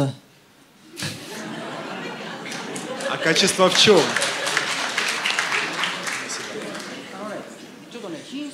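An audience laughs and applauds.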